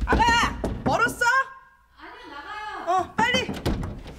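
A woman knocks on a door.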